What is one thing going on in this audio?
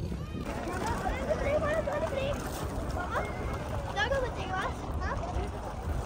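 Water laps and splashes against a stone edge.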